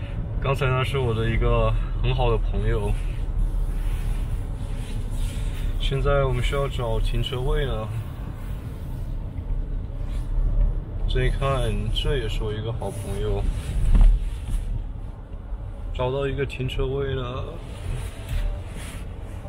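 A car engine hums low as the car rolls slowly.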